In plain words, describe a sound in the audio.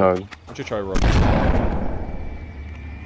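A shotgun fires once with a loud, booming blast.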